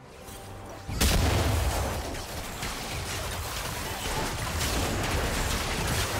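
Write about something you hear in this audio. Magic blasts whoosh and crackle in a fight.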